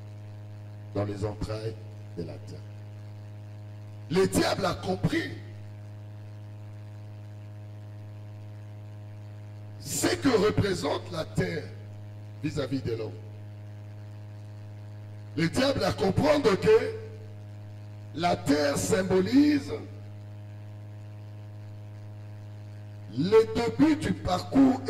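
A man preaches with animation into a microphone, in short bursts with pauses.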